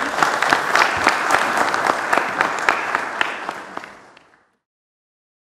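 An audience applauds in a large hall and the clapping fades away.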